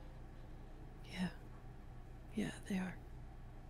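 A young woman speaks briefly and expressively into a close microphone.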